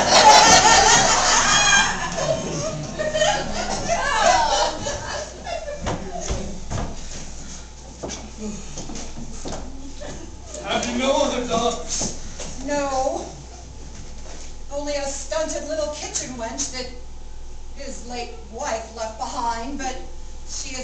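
Men and women speak lines with animation in a small echoing hall.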